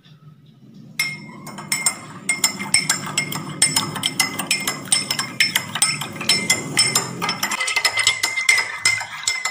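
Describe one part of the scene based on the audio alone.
A metal spoon clinks and scrapes against a glass as it stirs water.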